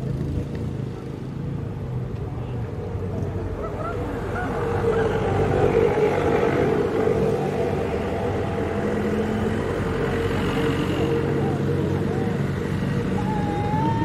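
Men chat nearby outdoors.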